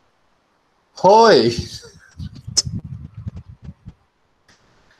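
A man laughs over an online call.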